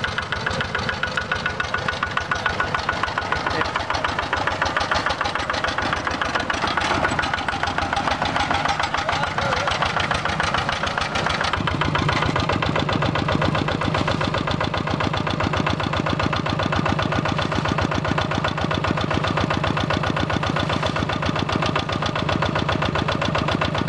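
A single-cylinder diesel walking tractor chugs.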